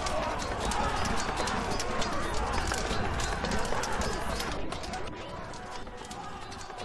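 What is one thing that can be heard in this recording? A crowd of men shout and roar in battle.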